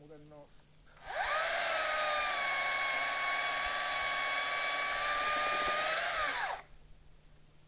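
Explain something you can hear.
A chainsaw roars steadily as it cuts through a log.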